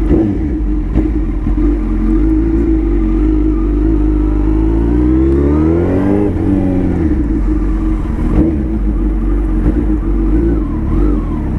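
A motorcycle engine rumbles and revs as the bike rides along.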